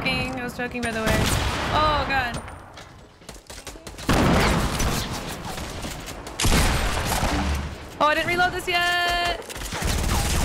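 A young woman speaks with animation into a headset microphone.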